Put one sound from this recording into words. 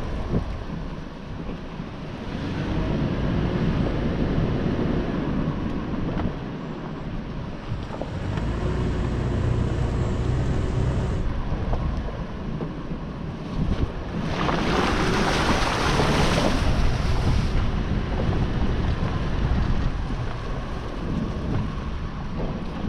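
A vehicle engine rumbles steadily, rising and falling as it drives.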